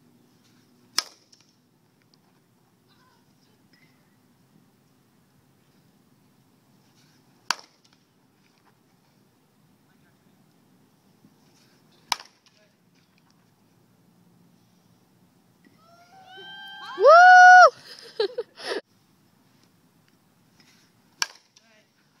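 A metal softball bat strikes a softball with a sharp ping.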